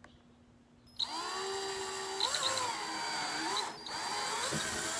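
A cordless drill whirs steadily, its whine rising and dipping.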